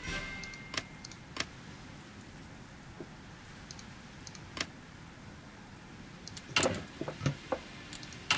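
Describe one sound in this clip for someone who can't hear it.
Short interface clicks sound as menu selections change.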